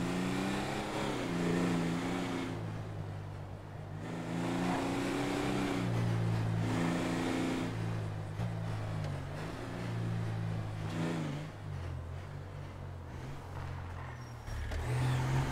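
A vehicle engine roars and revs up and down.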